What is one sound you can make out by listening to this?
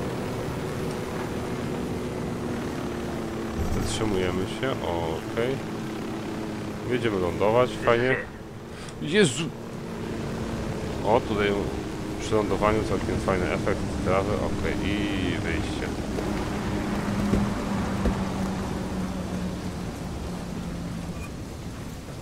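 A helicopter's rotor and engine drone steadily, then wind down.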